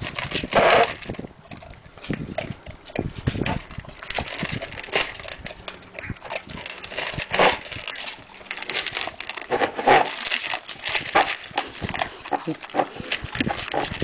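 A dog crunches dry kibble noisily.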